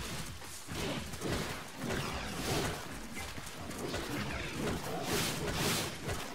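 A small dinosaur screeches.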